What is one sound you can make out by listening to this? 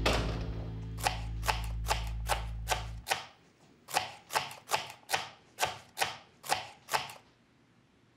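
A knife chops vegetables on a wooden board with quick, even strokes.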